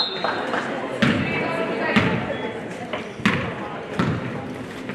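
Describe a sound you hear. A basketball bounces with echoing thuds on a wooden gym floor.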